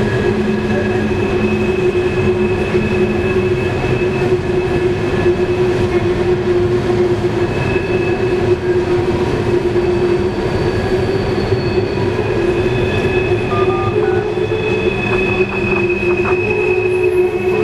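Steel wheels squeal on the track.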